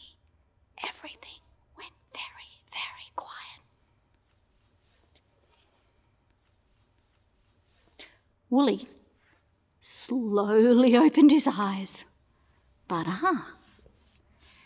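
A woman speaks expressively and close up, with long pauses.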